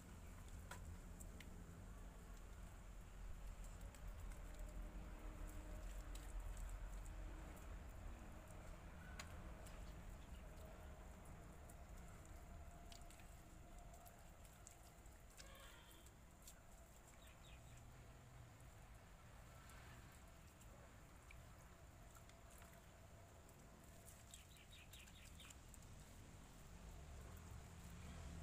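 A trowel scrapes and taps wet mortar on bricks.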